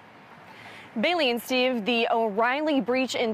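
A young woman speaks clearly into a microphone, in a reporter's steady tone.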